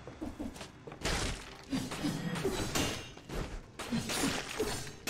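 Swords whoosh and strike in quick bursts.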